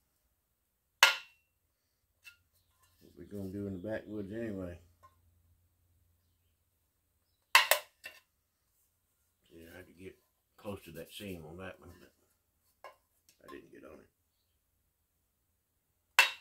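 A metal can clanks and scrapes.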